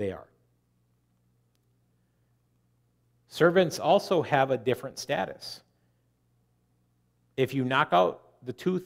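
A middle-aged man speaks calmly through a microphone, with pauses.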